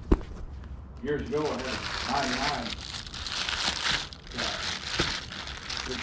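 Plastic wrapping rustles and crinkles under a hand.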